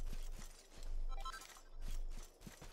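A bright chime rings as an item is picked up.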